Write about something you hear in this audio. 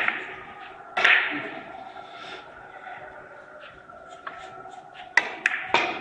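Billiard balls knock against each other and the cushions.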